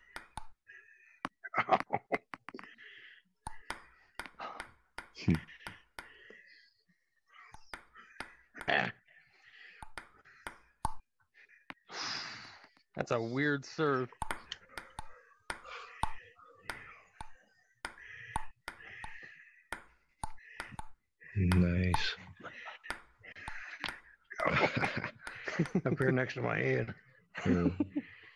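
A ping-pong ball clicks sharply against paddles and a table in quick rallies.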